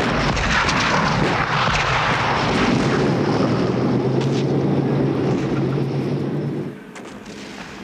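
A heavy battle roars with rumbling gunfire and blasts.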